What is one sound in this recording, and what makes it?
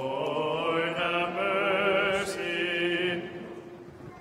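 A man chants in a steady sung voice in an echoing hall.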